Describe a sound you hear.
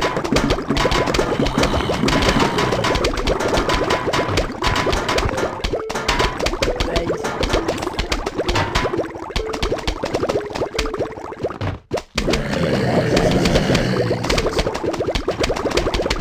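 Game plants fire rapid, rhythmic popping shots.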